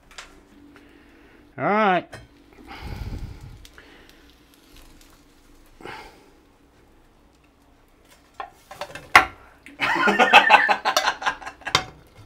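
A metal lid clinks against a frying pan.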